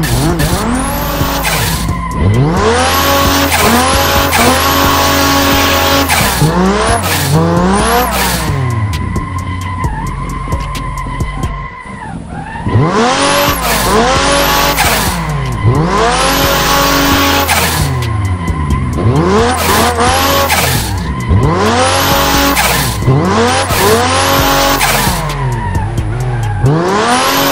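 A car engine revs hard, rising and falling with rapid gear shifts.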